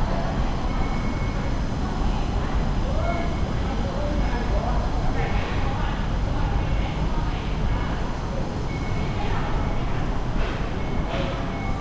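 People chatter faintly in the distance in a large, open, echoing hall.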